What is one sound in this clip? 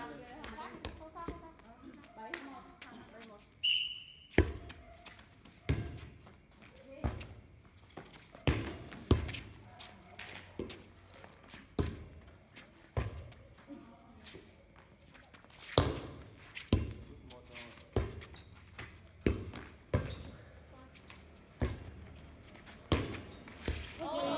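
A volleyball is hit again and again with sharp slaps, outdoors.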